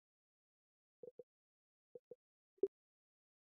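Soft electronic blips sound a few times.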